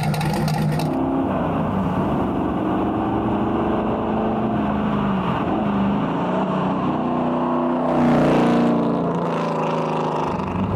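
A sports car roars past at speed, its engine rising and falling in pitch.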